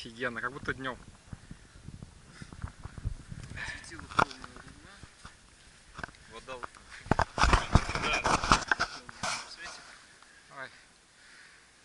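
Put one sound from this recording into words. Young men talk and laugh nearby, outdoors.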